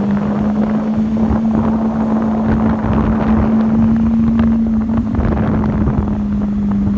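A sports car engine rumbles steadily at low speed.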